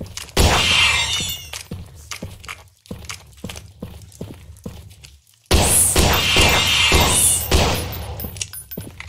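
A gun fires loud bursts that echo off rock.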